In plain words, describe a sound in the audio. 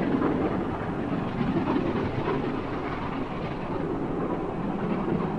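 A steam train chuffs steadily in the distance.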